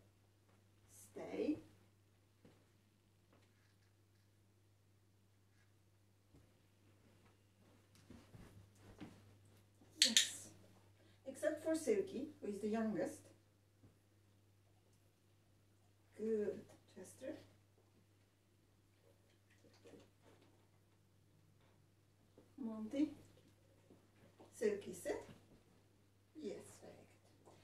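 A young woman gives short, firm commands to dogs, close by, in bursts.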